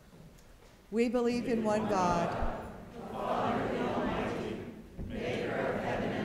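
A congregation recites together in unison.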